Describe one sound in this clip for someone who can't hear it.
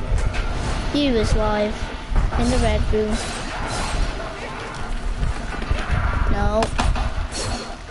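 A monster snarls and growls up close.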